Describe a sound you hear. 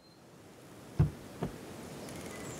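A car door clunks open.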